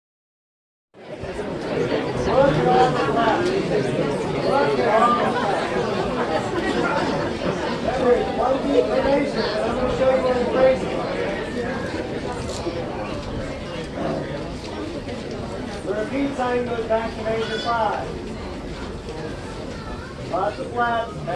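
A brass band plays a lively tune outdoors.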